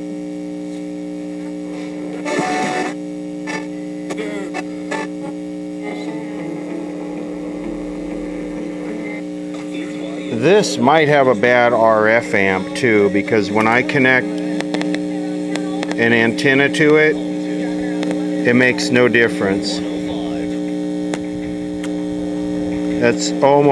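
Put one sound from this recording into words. A radio hums steadily through its loudspeaker.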